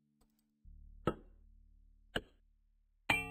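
A hammer knocks twice on wood.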